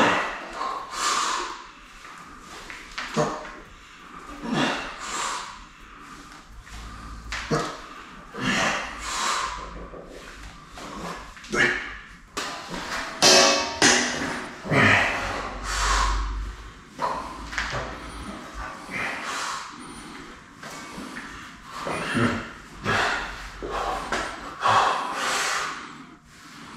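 A heavy weight thuds against a man's chest and shoulders.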